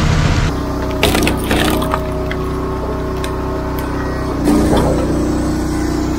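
A log splitter cracks a log apart with a loud splintering.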